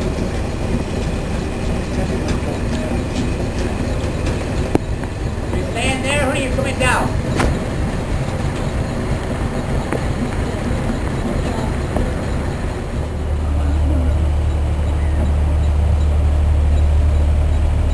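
A steam engine chugs and hisses steadily nearby.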